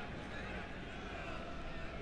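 A football is struck hard with a foot.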